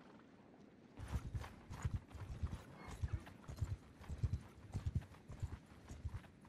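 A horse gallops with thudding hoofbeats.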